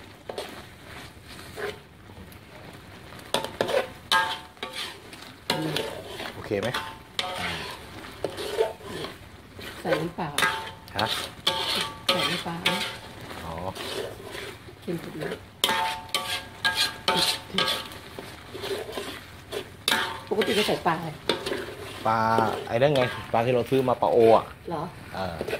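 Hot food sizzles and bubbles in a wok.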